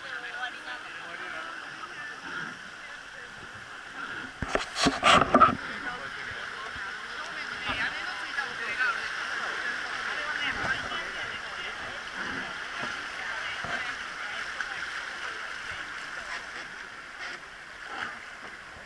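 River water rushes steadily over rapids outdoors.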